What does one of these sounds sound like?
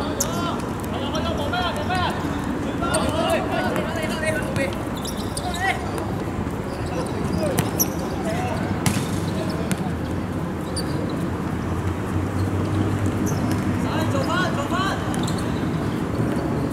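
Young men shout and call to each other across an outdoor court.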